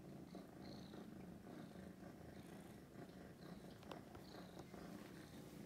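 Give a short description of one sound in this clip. A cat meows softly nearby.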